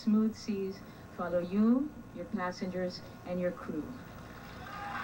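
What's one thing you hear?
A woman speaks into a microphone through a loudspeaker.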